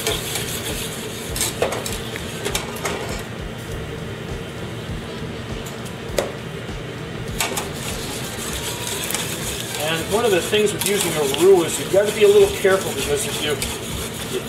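A metal whisk scrapes and clinks against a pot.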